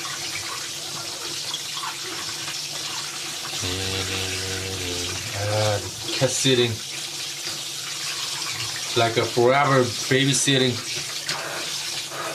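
Tap water runs steadily into a sink.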